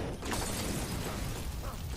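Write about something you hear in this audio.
A pistol fires a shot.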